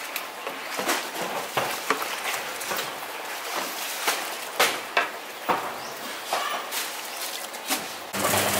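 A wooden paddle stirs and sloshes liquid in a large metal pot.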